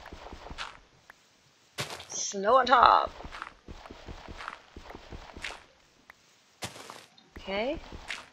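Dirt crunches in short, repeated bursts as blocks are dug.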